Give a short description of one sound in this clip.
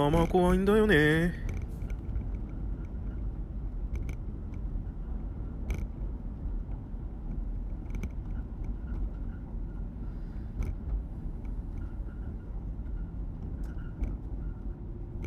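Wheels rumble low and steadily on a road surface.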